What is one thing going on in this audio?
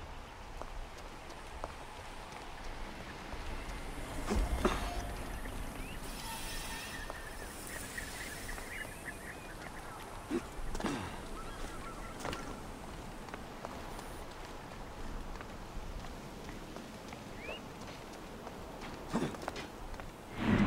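Footsteps run over rocky ground.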